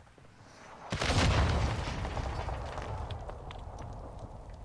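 An explosion booms and rumbles away.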